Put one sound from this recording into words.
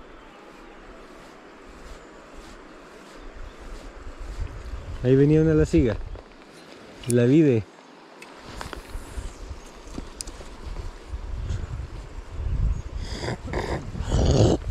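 A river flows and ripples over stones.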